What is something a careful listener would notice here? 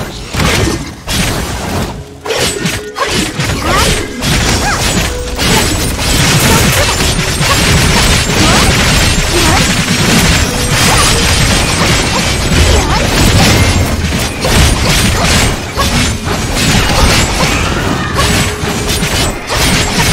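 Game sword slashes and magic blasts whoosh and crash rapidly.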